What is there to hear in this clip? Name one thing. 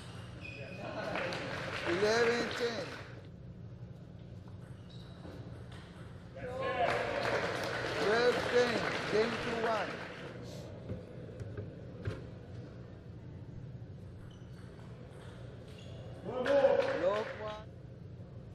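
A crowd cheers and claps in a large hall.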